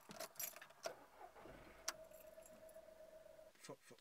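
Keys jingle.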